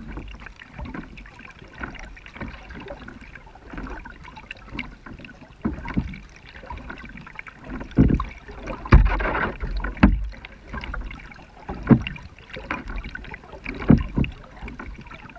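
Water laps and splashes against a kayak's hull.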